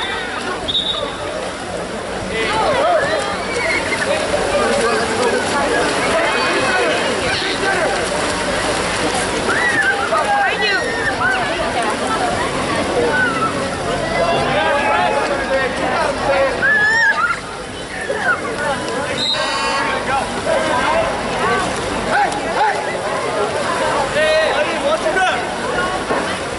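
Swimmers splash and churn the water.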